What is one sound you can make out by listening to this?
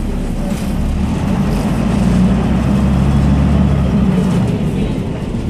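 A bus engine revs louder as the bus speeds up.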